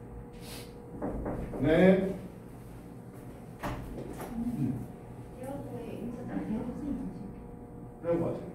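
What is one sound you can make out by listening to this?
A middle-aged man speaks calmly in a lecture voice.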